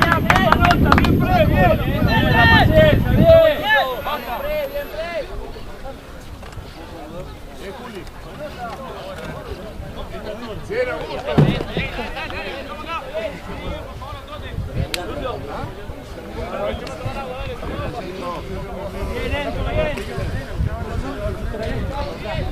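Several men shout and call out nearby outdoors.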